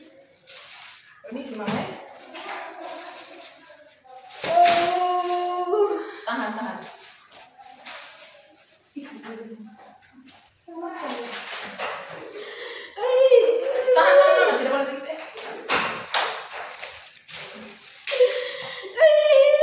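A young woman speaks nearby.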